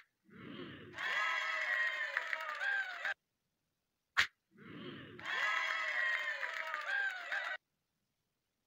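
A bright game victory jingle plays.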